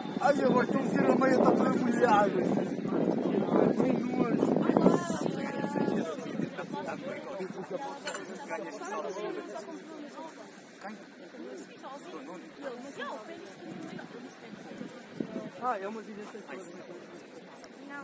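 A group of players in a huddle talks and shouts, heard from a distance outdoors.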